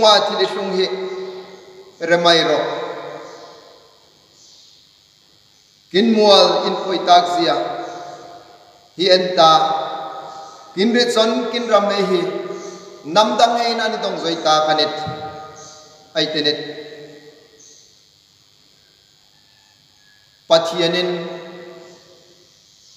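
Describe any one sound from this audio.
A man speaks slowly and earnestly in a room with a noticeable echo.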